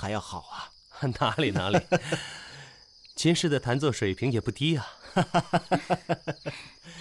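Another young man speaks cheerfully, close by.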